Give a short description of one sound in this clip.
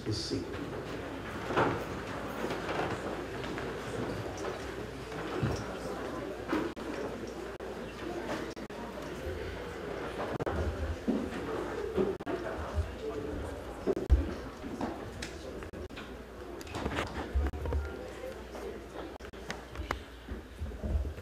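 A crowd murmurs softly in the background.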